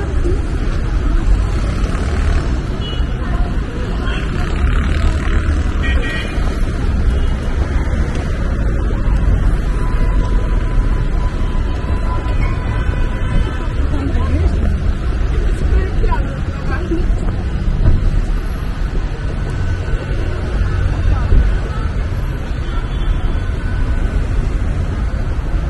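City traffic hums steadily along a busy street.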